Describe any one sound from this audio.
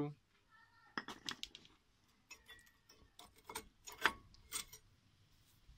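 Metal brake parts click and scrape as they are worked loose by hand.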